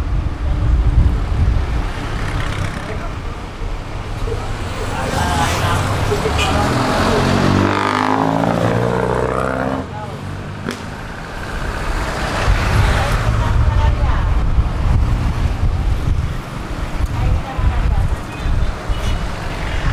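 Wind rushes in through an open bus window.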